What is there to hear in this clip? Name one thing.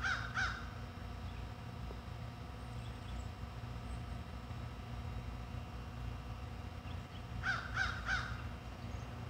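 A hawk gives sharp, piercing screams in short bursts of two or three, close by.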